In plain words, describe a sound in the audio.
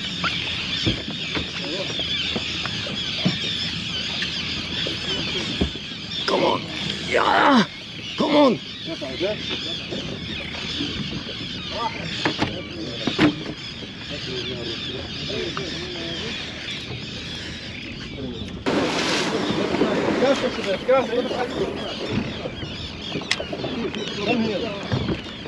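A fishing reel clicks as its handle is cranked.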